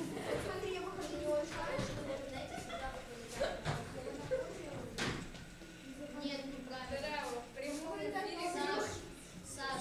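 Children talk and chatter nearby in a room.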